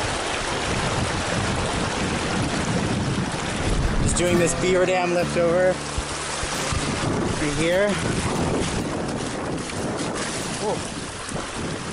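A stream gurgles steadily over shallow stones.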